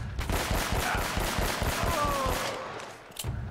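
Gunshots rattle in a rapid burst.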